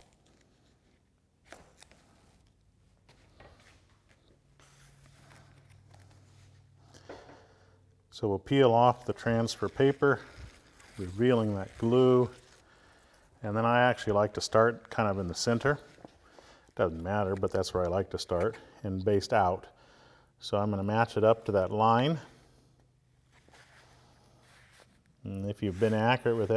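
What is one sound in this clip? Heavy fabric rustles softly as hands smooth it flat.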